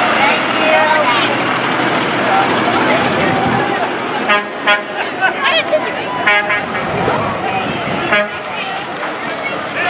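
A truck engine rumbles as it rolls slowly past.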